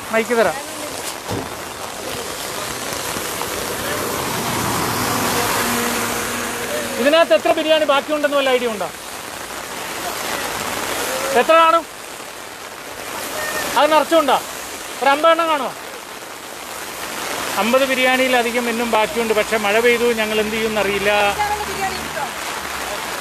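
A woman speaks loudly and with animation close by.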